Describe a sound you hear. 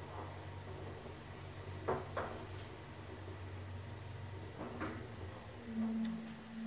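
An elevator car hums steadily as it moves.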